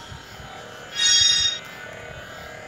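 A short electronic chime rings out as an item is collected.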